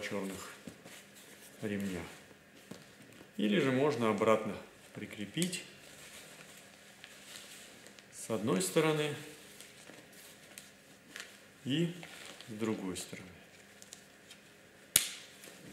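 Fabric rustles as hands handle it.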